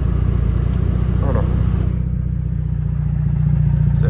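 A car door opens with a click.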